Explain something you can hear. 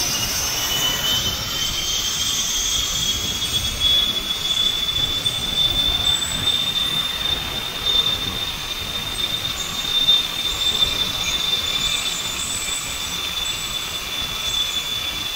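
A zip line pulley whines steadily along a cable.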